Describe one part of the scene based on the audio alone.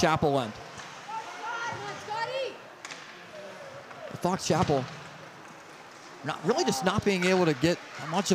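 Ice skates scrape and glide across the ice.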